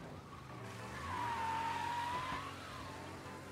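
Car tyres squeal on the road during a turn.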